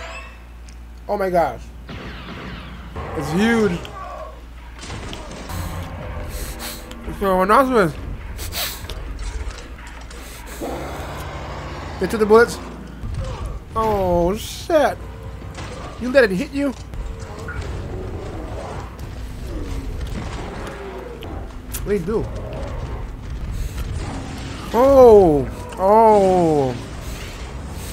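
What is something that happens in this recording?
A young man exclaims and talks with animation close to a microphone.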